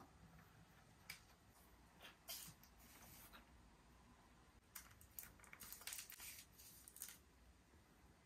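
Plastic packaging rustles and clicks softly.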